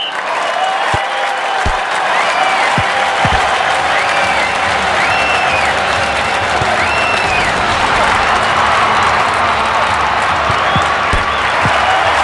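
A football is kicked with a sharp thud.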